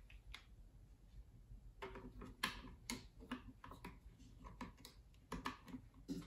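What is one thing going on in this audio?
Metal parts of a rifle click and clack as they are handled.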